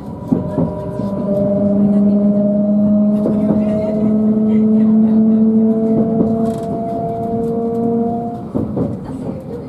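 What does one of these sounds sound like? An electric train motor hums and slowly rises in pitch.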